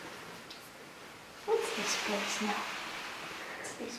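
A towel rustles and slides across a hard floor.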